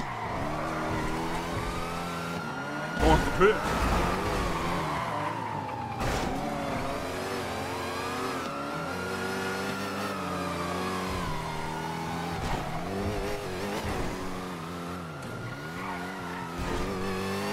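A siren wails, rising and slowly falling over and over.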